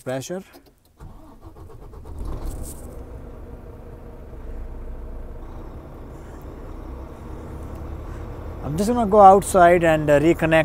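A truck's diesel engine starts and idles with a low, steady rumble.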